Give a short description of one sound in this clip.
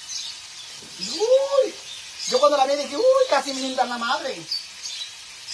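A woman speaks nearby in a lively, sing-song voice.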